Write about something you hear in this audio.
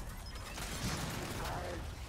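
A gun fires rapid shots.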